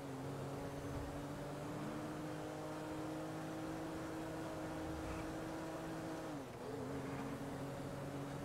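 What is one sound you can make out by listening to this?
A car engine drones steadily at speed, dipping briefly before picking up again.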